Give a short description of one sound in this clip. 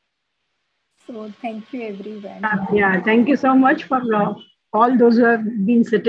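An elderly woman speaks warmly over an online call.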